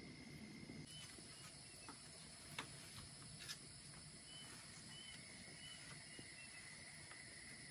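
Leafy greens rustle as a man handles them.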